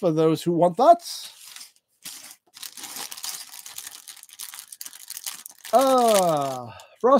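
A plastic bag crinkles and rustles as hands handle it.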